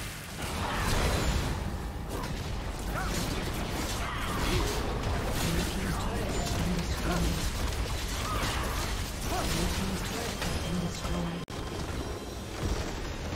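Game battle effects crackle and blast.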